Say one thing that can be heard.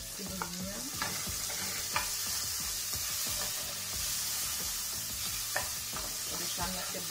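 A wooden spoon scrapes and knocks against a metal pan.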